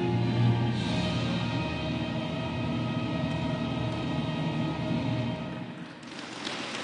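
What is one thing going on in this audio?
A national anthem plays loudly over loudspeakers in a large echoing hall.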